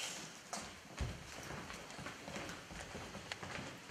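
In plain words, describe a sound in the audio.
Footsteps cross a floor quickly.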